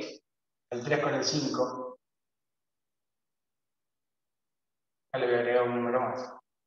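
A man explains calmly in short phrases, close by.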